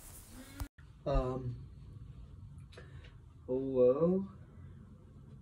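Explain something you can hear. A young man talks briefly on a phone, close by.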